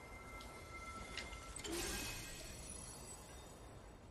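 A chest bursts open with a chime.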